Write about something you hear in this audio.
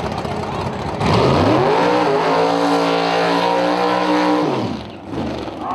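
A powerful race car engine revs loudly.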